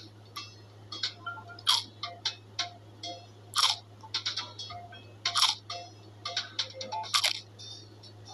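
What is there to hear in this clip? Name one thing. A cartoon bunny crunches and munches on a carrot.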